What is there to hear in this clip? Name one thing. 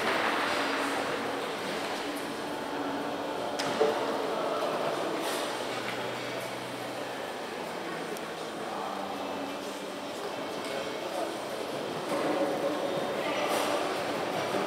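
A crowd murmurs quietly in a large echoing hall.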